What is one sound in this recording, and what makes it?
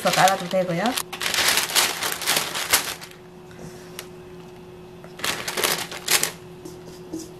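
Baking paper crinkles and rustles under handling.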